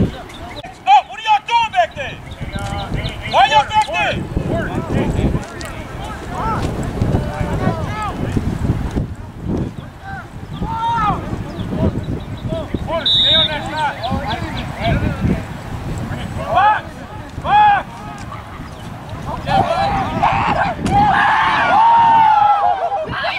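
Young women and girls shout and call out across a playing field.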